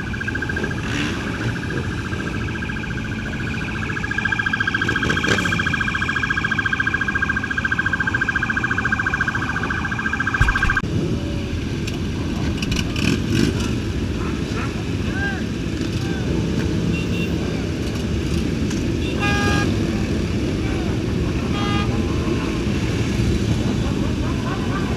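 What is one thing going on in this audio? Many motorcycle engines idle and rumble close by, outdoors.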